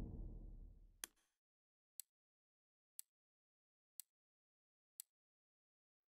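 Short menu clicks tick at a steady pace.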